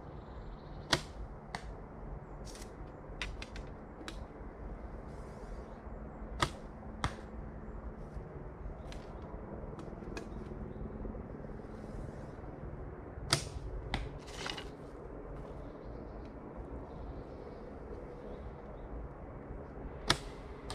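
A bowstring snaps as an arrow is released.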